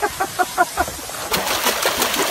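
A dog splashes into water.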